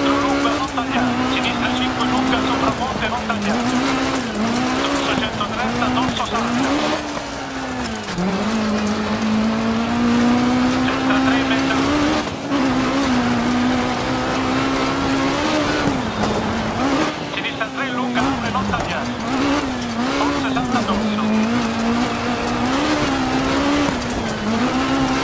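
A rally car engine roars, revving up and down as it shifts gears.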